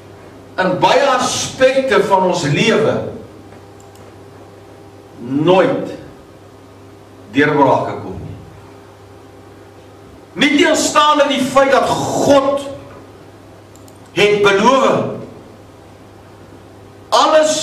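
An older man preaches with feeling through a microphone and loudspeakers, in short bursts with pauses.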